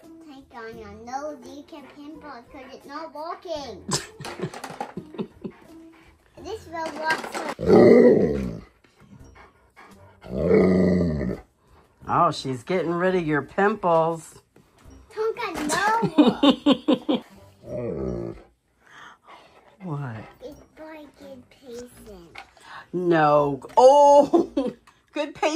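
A young girl talks playfully close by.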